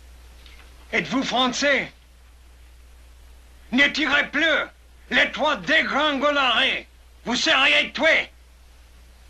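A middle-aged man speaks urgently up close, in short bursts.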